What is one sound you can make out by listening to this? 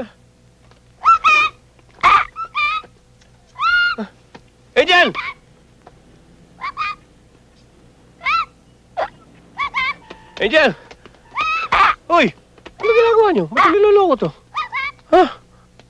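Young children shout and cry out in high voices.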